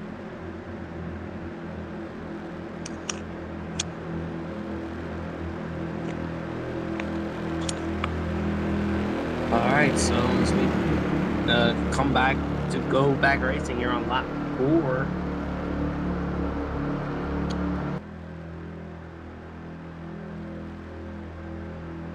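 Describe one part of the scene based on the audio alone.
Many race car engines drone steadily together.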